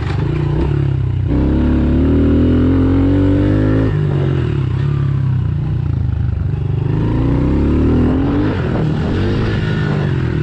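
A dirt bike engine roars close by, revving up and down as it rides.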